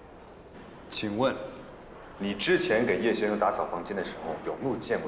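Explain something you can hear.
A man speaks hesitantly up close.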